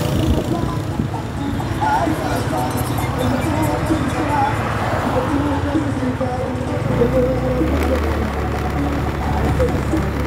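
A car drives along the road nearby.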